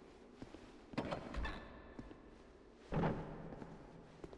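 A heavy wooden door swings open.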